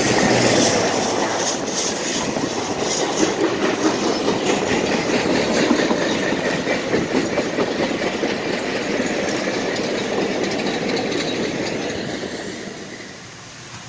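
A passing train rumbles and clatters loudly along the track, then fades.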